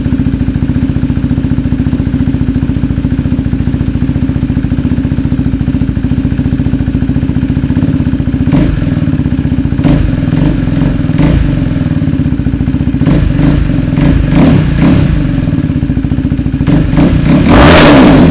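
A motorcycle engine idles with a steady, throbbing rumble.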